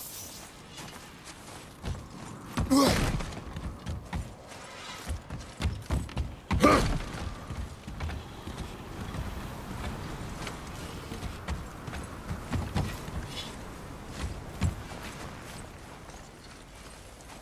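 Footsteps crunch through snow and thud on wooden planks.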